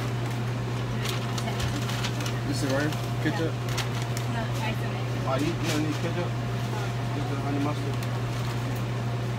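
A paper bag rustles and crinkles.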